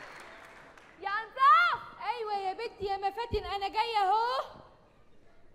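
A young woman speaks loudly and with feeling on a stage.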